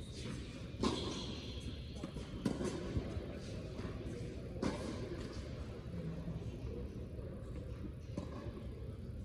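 Tennis balls are hit back and forth with rackets, echoing in a large hall.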